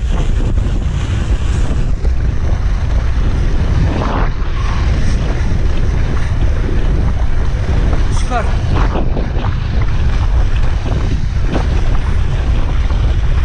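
Tyres of a mountain bike rumble and crunch over packed snow at speed.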